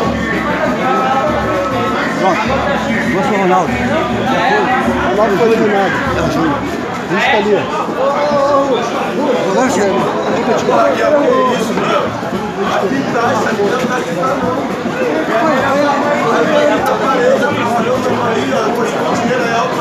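A crowd of men chatter and talk loudly all around.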